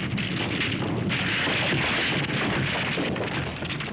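A rock tower crumbles with a loud rumbling crash.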